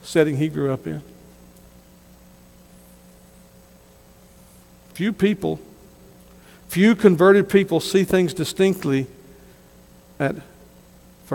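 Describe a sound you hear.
A man speaks slowly and deliberately through a microphone, with long pauses.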